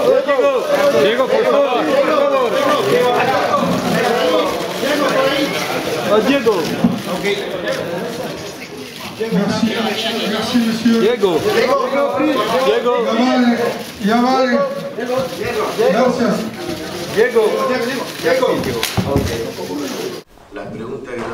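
A crowd of people talk and call out over one another nearby.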